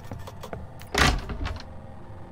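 A wooden cupboard door knocks shut.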